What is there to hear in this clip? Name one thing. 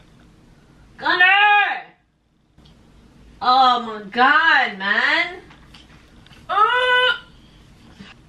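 A young woman talks close by in a high, sing-song voice.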